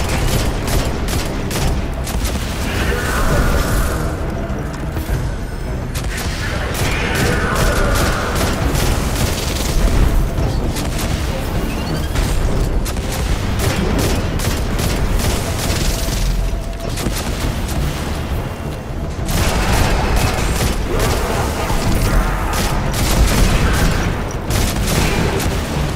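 Rifle shots fire rapidly in bursts.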